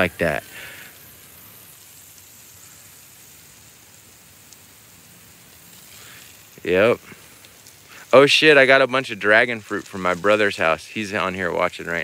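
Water from a sprinkler sprays and patters onto grass and leaves.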